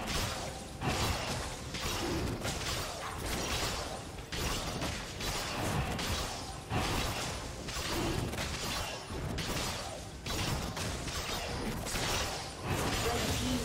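Game characters clash with bursts of spell and sword effects.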